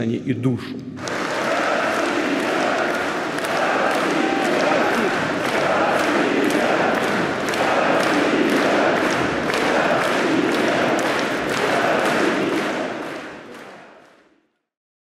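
A crowd chants loudly in rhythm in a large echoing hall.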